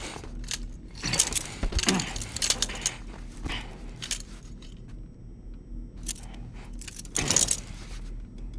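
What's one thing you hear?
A strap clicks and rustles as it is fastened around a wrist.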